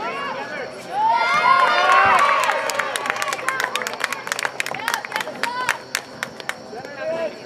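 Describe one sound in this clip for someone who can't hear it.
Spectators cheer loudly.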